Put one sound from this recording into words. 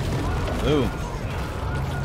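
Water splashes and crashes.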